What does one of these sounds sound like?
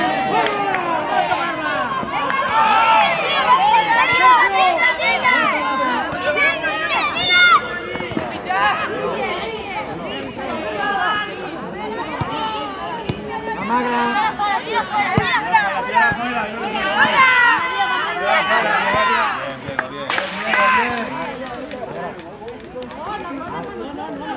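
Young players shout and call out across an open field.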